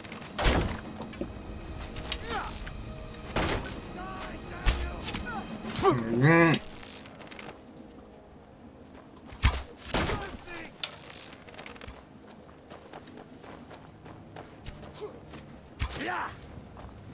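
Arrows thud as they are loosed.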